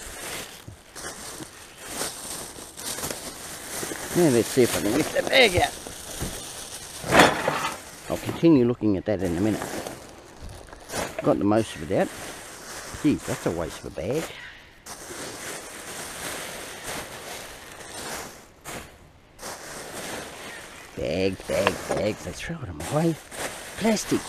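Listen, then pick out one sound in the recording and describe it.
Plastic bags rustle and crinkle as hands rummage through them.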